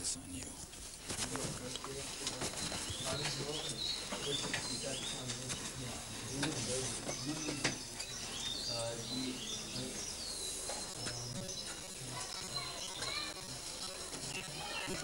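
An elderly man speaks slowly and softly, close by.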